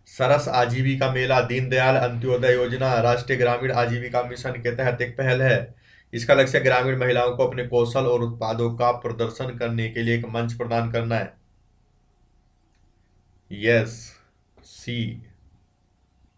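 A young man speaks steadily and clearly into a close microphone.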